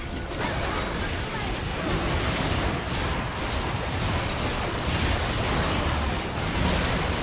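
Spell effects burst and crackle in a hectic fantasy battle.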